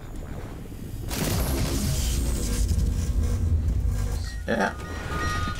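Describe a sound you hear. An energy beam crackles and hisses.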